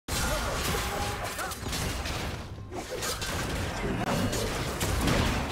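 Game fighters clash with sharp magical hits and whooshing impacts.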